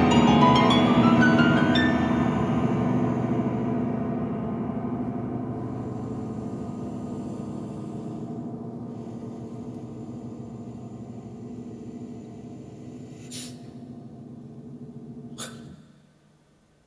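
A piano plays a run of notes that rings out and slowly fades.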